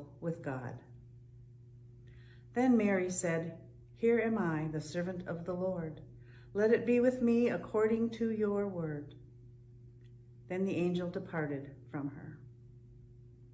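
An older woman reads out calmly, close to a microphone.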